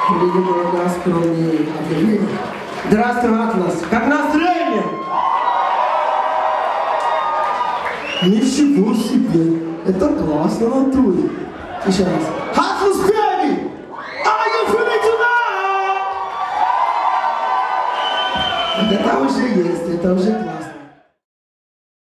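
Several singers sing together through microphones.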